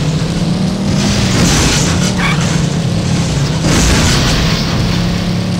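Tyres scrape and skid on loose ground in short bursts.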